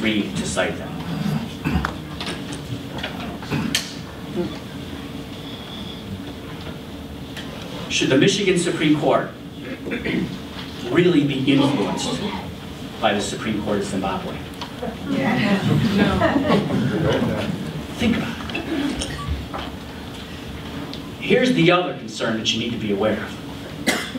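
A man speaks calmly into a microphone, heard through a loudspeaker in a room.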